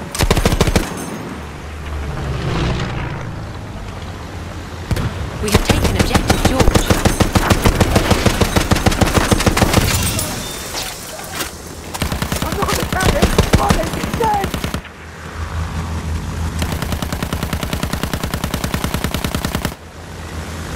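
A plane's machine gun fires in rapid bursts.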